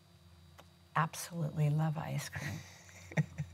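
An elderly woman speaks calmly and close up through a clip-on microphone.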